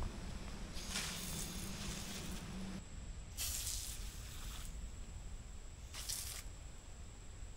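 An aerosol can sprays in short hissing bursts.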